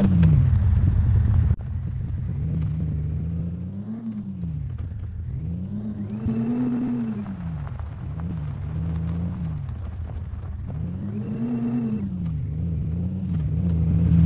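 An engine hums and revs up and down repeatedly.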